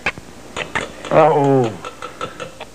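A man sighs and moans.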